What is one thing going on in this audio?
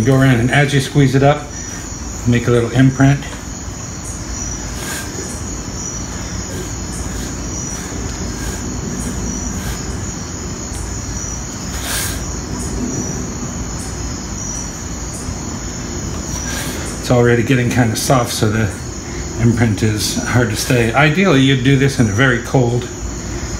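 A fork presses and scrapes lightly around the edge of a pastry crust.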